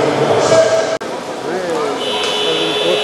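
Water splashes as swimmers move through a pool.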